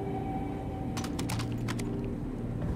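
A gun's metal parts click and clack sharply.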